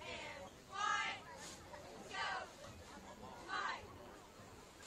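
Young men shout loudly nearby, outdoors.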